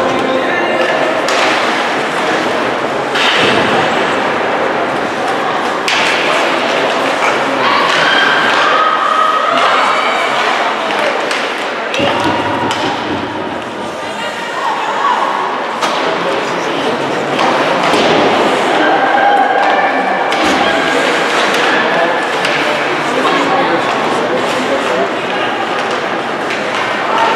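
A crowd of spectators chatters and calls out in an echoing arena.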